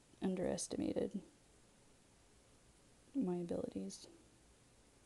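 A young woman speaks calmly close to a microphone, in two short bursts.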